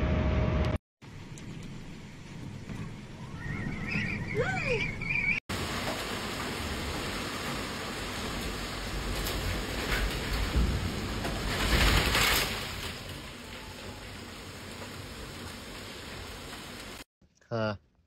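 Strong wind roars through a storm.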